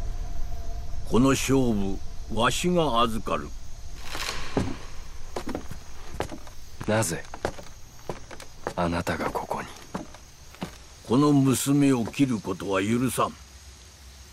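An elderly man speaks in a low, firm voice.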